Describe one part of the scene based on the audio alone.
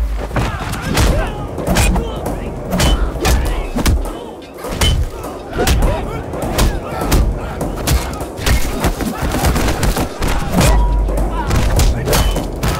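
Heavy punches land with loud thuds, over and over.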